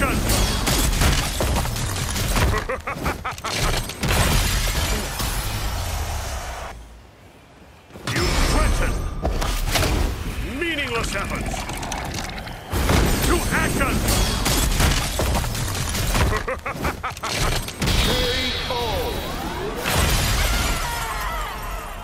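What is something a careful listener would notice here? Heavy blows and magic blasts crash and boom loudly.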